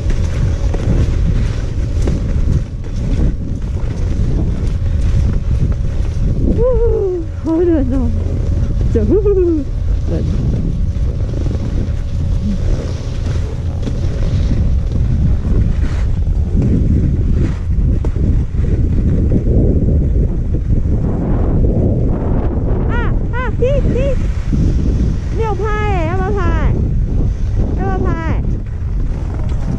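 Wind rumbles loudly outdoors.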